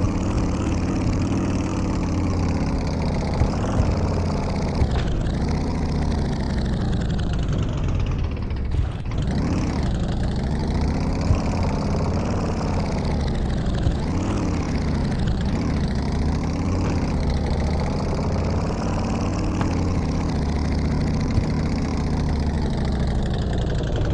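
A motorcycle engine drones steadily, its pitch rising and falling as it revs.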